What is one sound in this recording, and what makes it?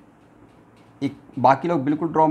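A man speaks calmly, like a teacher explaining.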